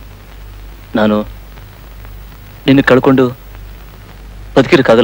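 A man speaks in short, emphatic bursts close by.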